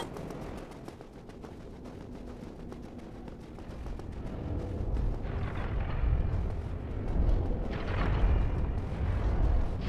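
Armoured footsteps thud on stone.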